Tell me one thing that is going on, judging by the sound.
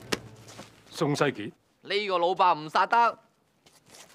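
A man speaks loudly and sternly.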